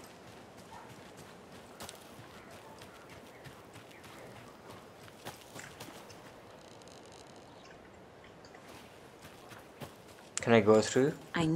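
Footsteps crunch over grass and leaves.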